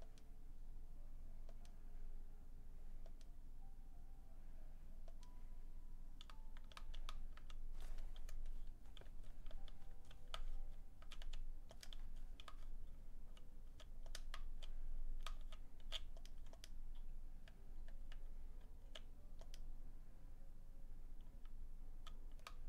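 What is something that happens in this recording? Short electronic menu beeps sound from a video game.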